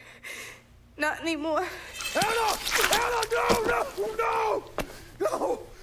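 A man shouts in anguish.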